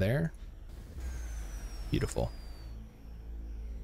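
A game's energy beam fires with a falling electronic whoosh.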